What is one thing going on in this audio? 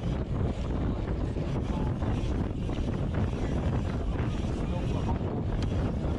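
Wind rushes past the microphone as a BMX bike rides fast.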